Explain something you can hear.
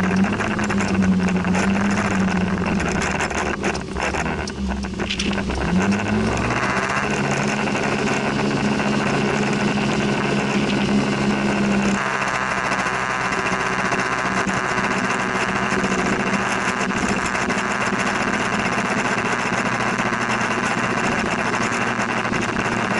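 A vehicle engine hums steadily and rises in pitch as it speeds up.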